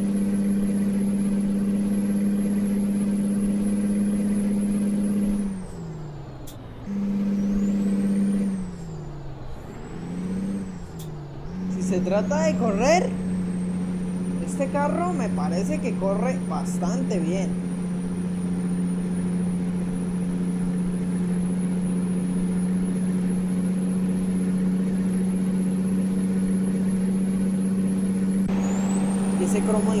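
A truck engine drones steadily, dropping and climbing again as gears change.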